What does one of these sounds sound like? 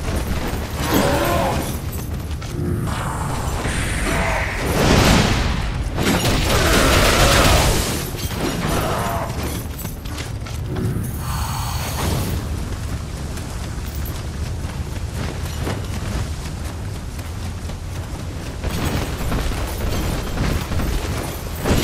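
Blades slash and clang in a fierce fight.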